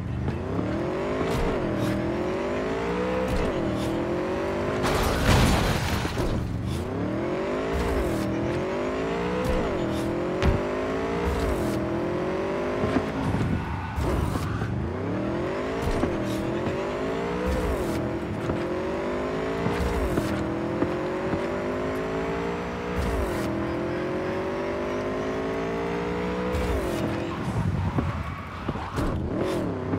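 A motorcycle engine revs up and down again and again as the gears shift.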